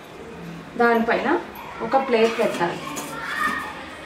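A metal lid clinks onto a steel pot.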